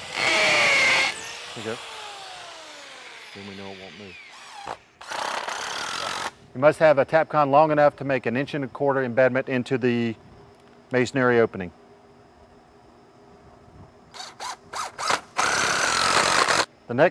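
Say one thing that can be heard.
A power drill whirs loudly as it bores into concrete.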